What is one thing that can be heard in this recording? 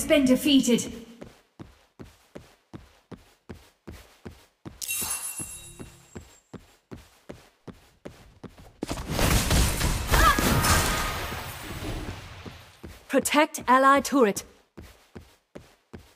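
Footsteps tap quickly and evenly.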